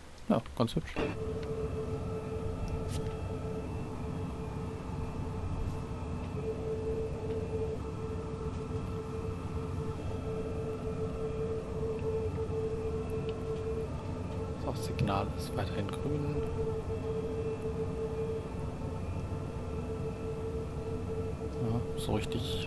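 An electric train's motor hums steadily from inside the cab.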